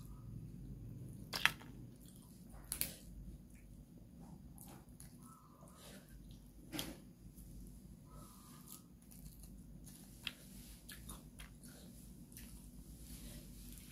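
Fish bones and flesh crack and tear as fingers pull them apart.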